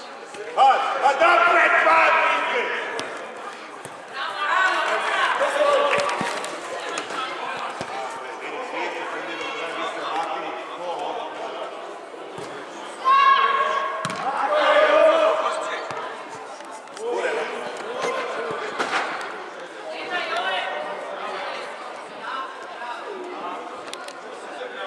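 Children shout and call out across a large echoing hall.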